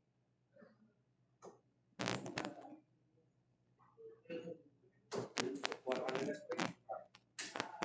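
Steel-tip darts thud into a bristle dartboard.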